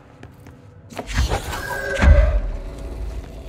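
A heavy metal object crashes with a deep thud.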